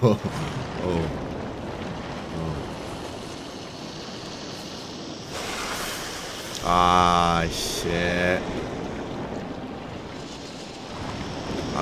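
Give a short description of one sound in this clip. Footsteps rustle through dry brush and snow.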